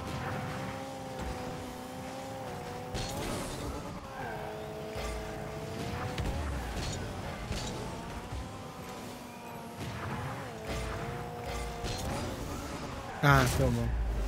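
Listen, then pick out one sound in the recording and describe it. A game car's engine hums and shifts in pitch.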